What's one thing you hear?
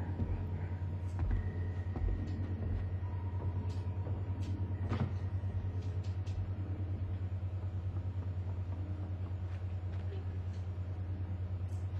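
Small footsteps patter on a wooden floor.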